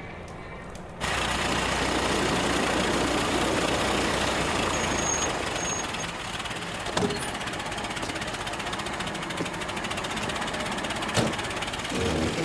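A car engine idles steadily outdoors.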